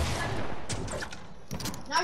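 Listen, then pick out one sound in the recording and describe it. A pickaxe strikes wood with a hard thud.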